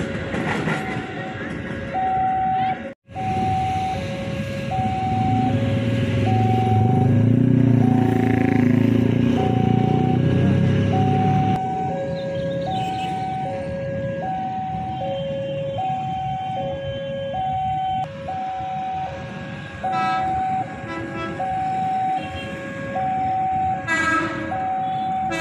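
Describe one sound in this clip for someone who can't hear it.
A railway crossing bell dings steadily in an alternating two-note pattern.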